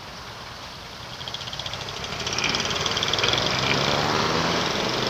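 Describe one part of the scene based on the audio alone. Motorcycle engines rev and pull away loudly.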